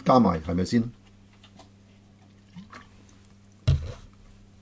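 An older man gulps water from a plastic bottle.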